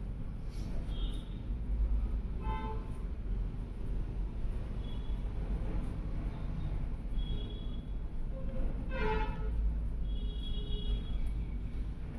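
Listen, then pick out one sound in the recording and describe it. A marker squeaks and scratches across paper in short strokes.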